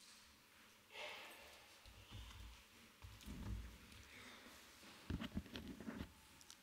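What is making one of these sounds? A man speaks calmly over a microphone in a large echoing hall.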